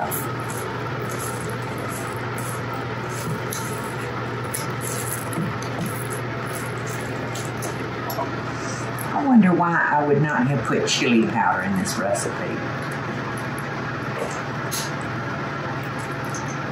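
A wooden spoon stirs and scrapes thick batter in a bowl.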